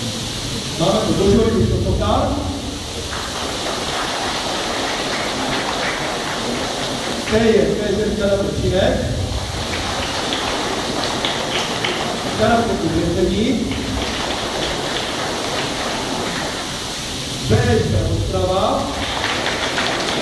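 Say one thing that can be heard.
A man calls out to a lined-up group in a large echoing hall.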